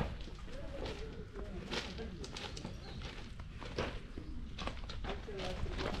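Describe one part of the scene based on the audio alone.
Footsteps crunch on gravel nearby.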